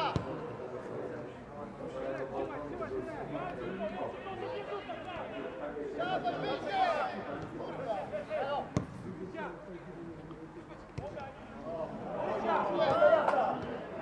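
Men shout to each other across an open field.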